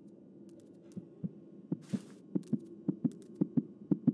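Heavy footsteps thud quickly and grow louder.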